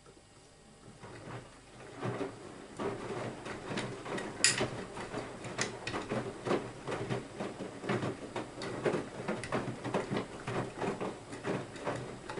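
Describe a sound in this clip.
Water sloshes and splashes inside a washing machine drum.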